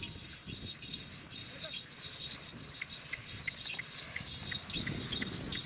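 A heavy stone block scrapes and drags along a gravel road.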